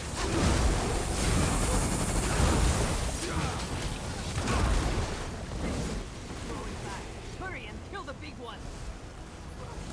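Crackling lightning bursts and booms amid combat.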